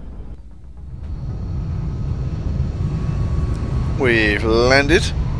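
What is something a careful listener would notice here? A spacecraft engine hums and rumbles low, growing louder.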